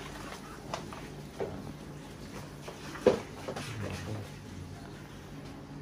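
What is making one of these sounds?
Paper banknotes rustle as a man counts them.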